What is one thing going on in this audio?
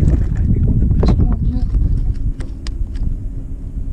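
A small fish flaps and rattles against a boat.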